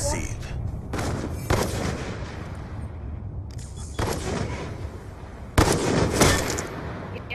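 Loud rifle shots crack and echo.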